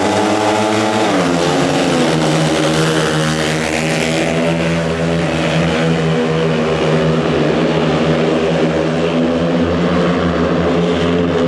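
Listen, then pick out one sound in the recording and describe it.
Motorcycle engines roar at full throttle and race past.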